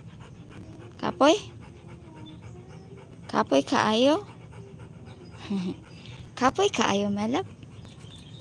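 A dog whines and yelps in short, high, falling cries.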